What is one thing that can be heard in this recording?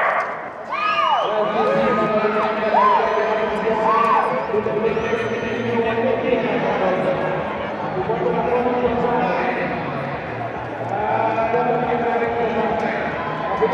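A crowd cheers and shouts loudly in a large open stadium.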